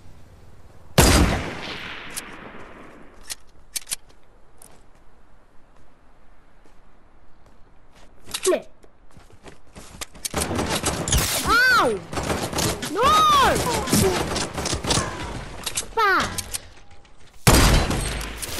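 A sniper rifle fires a loud, sharp shot that echoes away.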